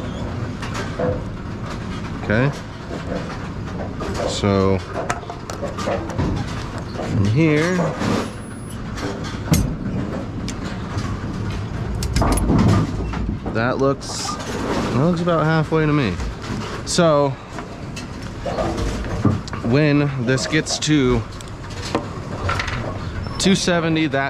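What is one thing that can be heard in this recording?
Metal parts clink and rattle as hands work on a machine.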